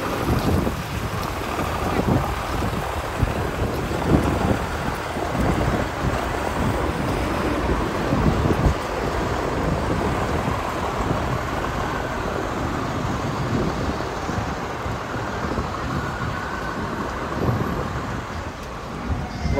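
Cars drive by on a city street.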